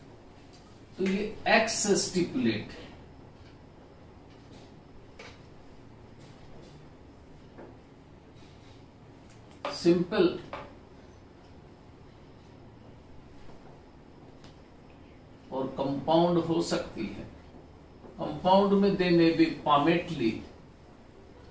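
A middle-aged man speaks calmly in short phrases, close by.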